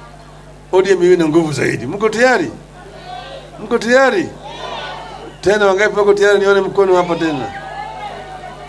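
A man speaks loudly and with animation through a microphone over loudspeakers.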